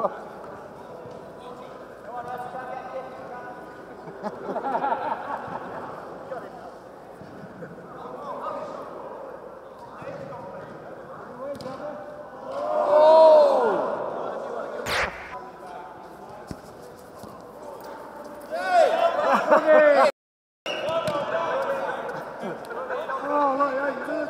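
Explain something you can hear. Elderly men call out to each other in a large echoing indoor hall.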